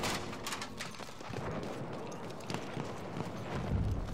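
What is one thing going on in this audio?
An explosion booms loudly nearby.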